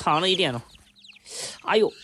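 Chicks flap their wings in a brief flurry.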